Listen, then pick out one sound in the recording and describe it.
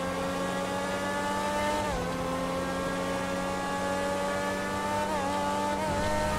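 A race car engine roars at high speed, with its pitch dropping briefly at each gear change.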